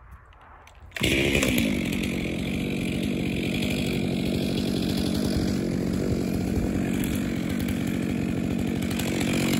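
A chainsaw engine starts and runs with a loud, steady buzz close by.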